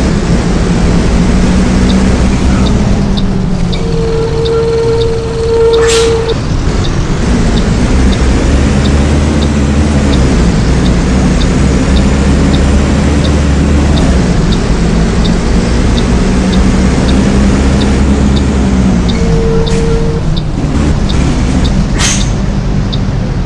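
A bus engine rumbles steadily, rising and falling as it drives.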